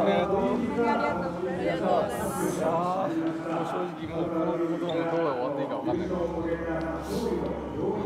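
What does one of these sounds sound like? Several young people talk quietly in a close huddle.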